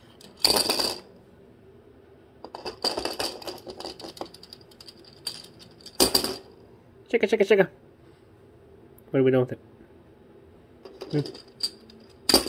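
A plastic toy clatters and taps on a wooden floor.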